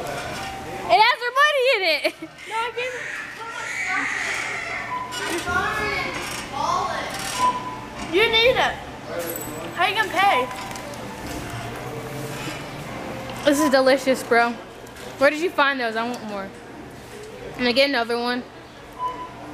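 A young girl squeals with laughter.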